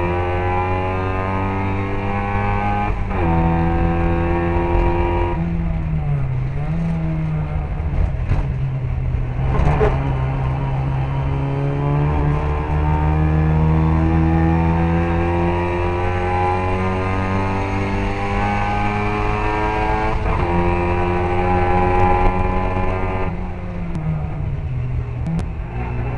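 A small car engine roars loudly close by, rising and falling in pitch as gears change.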